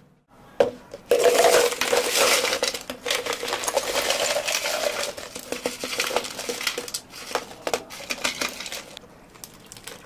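Ice cubes clatter and rattle into plastic cups.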